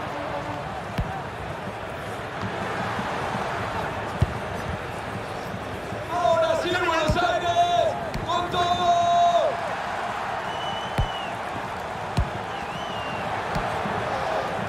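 A ball is kicked with sharp thuds now and then.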